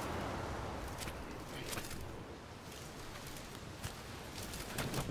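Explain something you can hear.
Footsteps crunch on wet stones.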